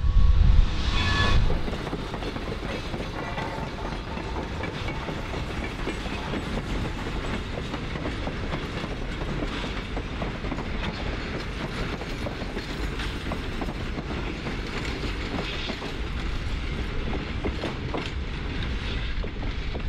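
Loaded freight cars clatter over rail joints.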